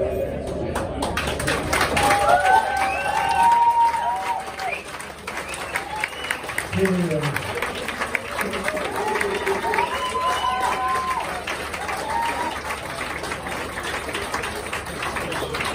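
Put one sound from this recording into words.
A crowd cheers, whistles and applauds.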